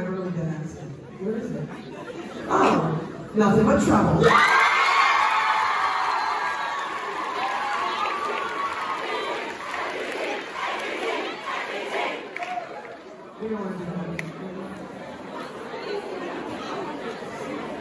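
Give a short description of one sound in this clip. A man announces over a loudspeaker in a large hall.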